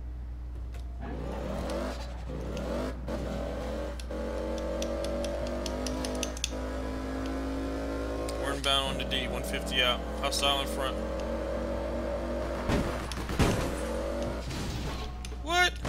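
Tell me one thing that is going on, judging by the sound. A car engine revs and roars as the car speeds along.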